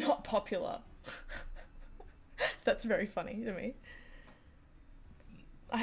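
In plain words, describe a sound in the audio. A young woman laughs softly.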